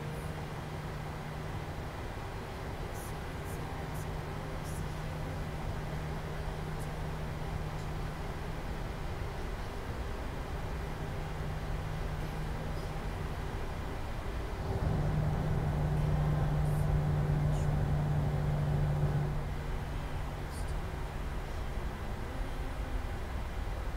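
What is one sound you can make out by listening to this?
Jet engines hum steadily, swelling louder for a few seconds before settling back.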